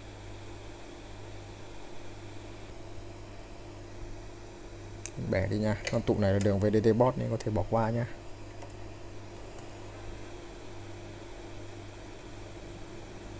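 A hot air blower hisses steadily.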